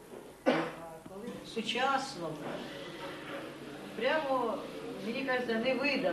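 A middle-aged woman speaks with animation at close range.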